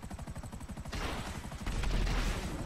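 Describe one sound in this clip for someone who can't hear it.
An explosion booms as a rocket hits.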